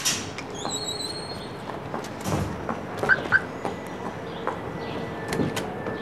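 Footsteps tap quickly on pavement.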